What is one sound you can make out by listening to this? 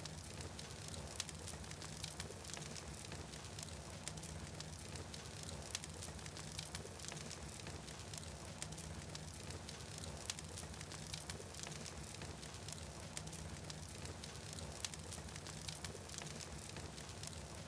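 A large fire crackles and pops.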